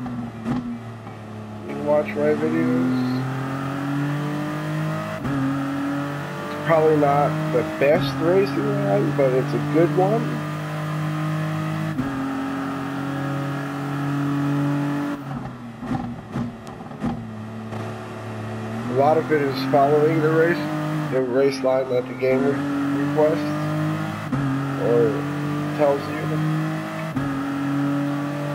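A racing prototype's engine roars at high revs, shifting up through the gears.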